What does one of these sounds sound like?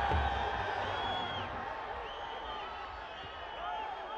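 A referee's whistle blows sharply.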